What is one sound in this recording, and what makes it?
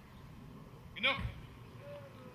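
A Dobermann barks once.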